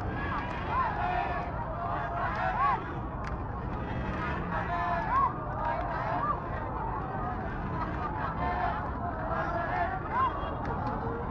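Young women scream and whoop with excitement.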